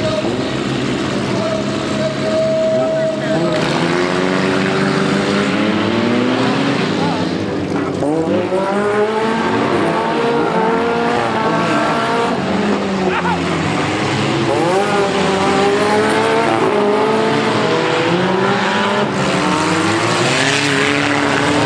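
Car engines roar and rev loudly in an outdoor arena.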